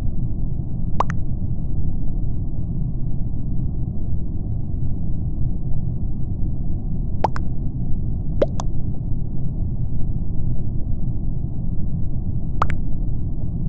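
A short message blip sounds several times.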